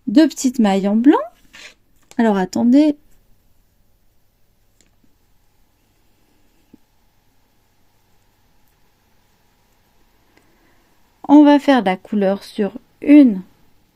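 Metal knitting needles click softly against each other.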